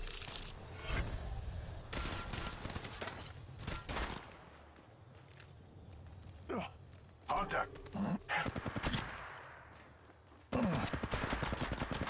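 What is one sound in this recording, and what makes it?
An automatic rifle fires bursts of shots in a video game.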